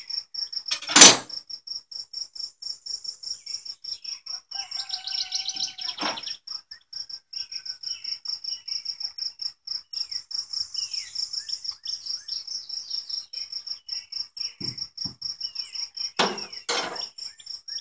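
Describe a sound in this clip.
A wooden hive frame knocks against the hive box.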